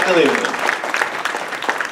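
An elderly man speaks through a microphone in an echoing hall.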